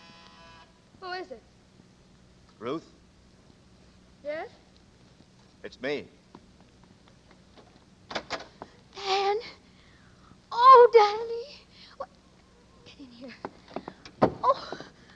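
A woman cries out in distress into a microphone, heard as an old radio broadcast.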